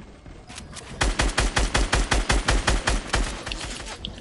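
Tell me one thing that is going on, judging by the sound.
Wooden walls are placed in a game with rapid, even thuds.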